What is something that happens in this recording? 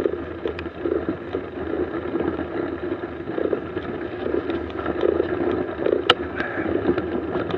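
Bicycle tyres crunch slowly over packed snow.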